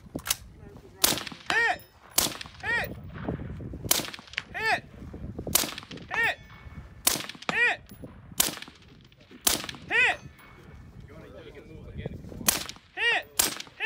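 Rifle shots crack loudly outdoors, one every second or two.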